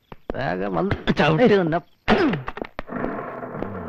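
A man bangs on a wooden door with his fist.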